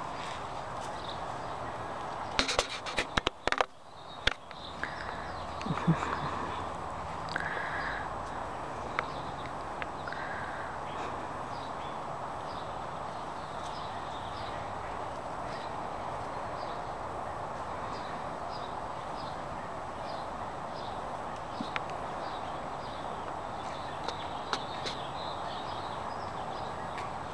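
Kittens scuffle and rustle in dry grass and leaves.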